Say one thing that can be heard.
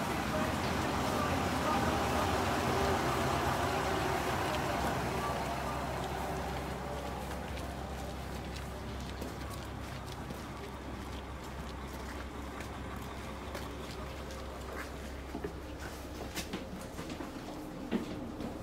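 A diesel train engine idles with a low, steady rumble.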